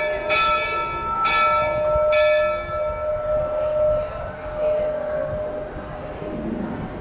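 A locomotive bell clangs three times and rings on, slowly fading.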